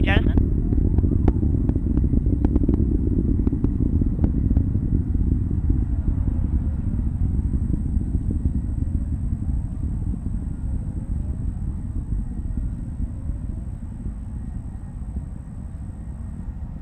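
A rocket engine roars with a deep, crackling rumble that slowly fades.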